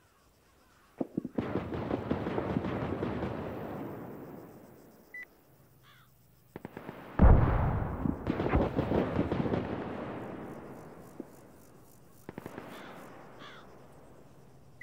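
Rifles fire in rapid bursts outdoors, echoing across open ground.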